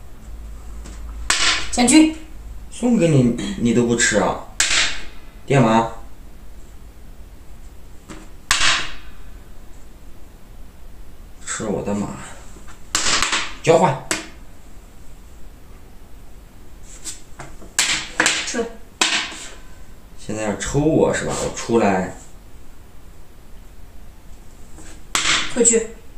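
Wooden game pieces tap and slide on a board.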